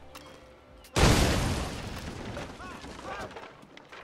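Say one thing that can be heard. A gunshot bangs loudly and echoes away.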